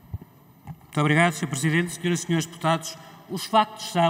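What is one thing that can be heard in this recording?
A middle-aged man speaks calmly into a microphone, reading out.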